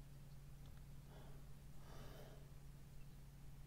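A young woman murmurs briefly and softly into a microphone.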